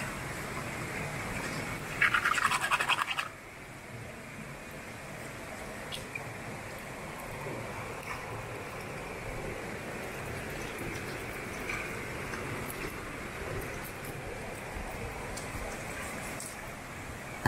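A stream flows and babbles steadily nearby.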